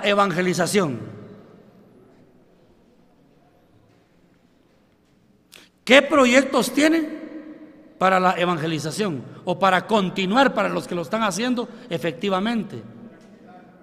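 An elderly man speaks with animation into a microphone, in a large echoing hall.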